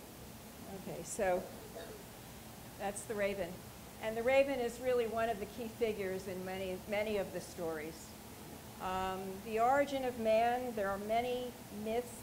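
A woman speaks calmly over a microphone through loudspeakers in a large room.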